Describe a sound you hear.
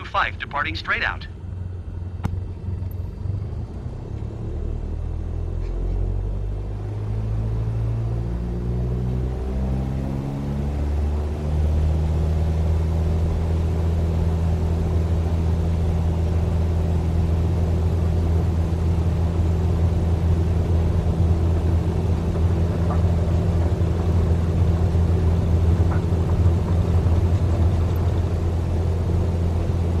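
A small propeller plane's engine roars, rising in pitch and then holding steady.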